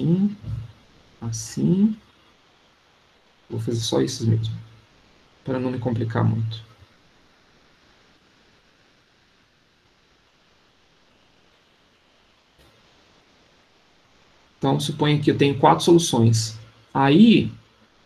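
A man speaks calmly through a microphone in an online call, with pauses.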